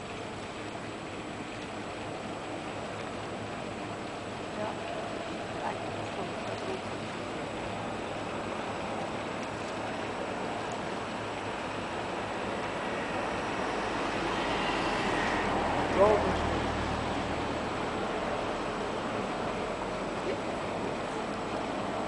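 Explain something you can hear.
A passenger boat's engine hums far off across calm water.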